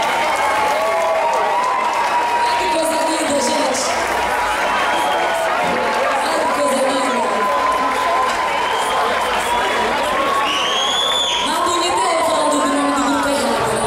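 An electric guitar plays along with the band.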